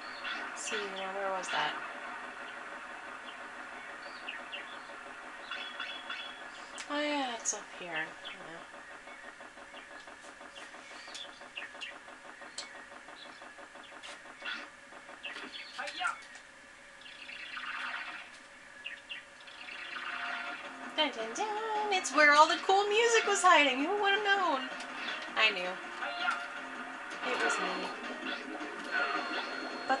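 Game sound effects chirp and whoosh from a television speaker.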